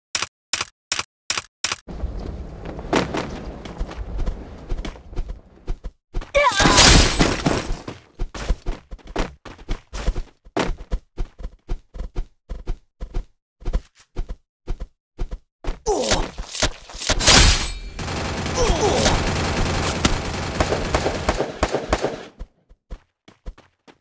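Gunshots from a game fire in quick bursts.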